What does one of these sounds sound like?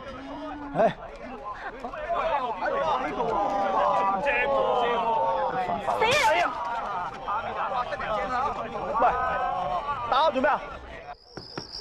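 A crowd of young men laughs and cheers.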